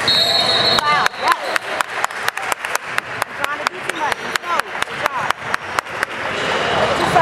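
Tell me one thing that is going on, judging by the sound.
A basketball bounces rapidly on a hard floor in an echoing gym.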